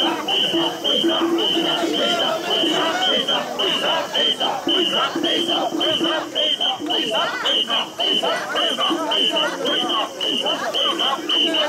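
Many men and women shout and cheer close by.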